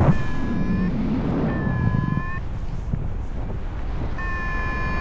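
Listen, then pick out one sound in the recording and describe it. Wind rushes loudly and steadily past in the open air.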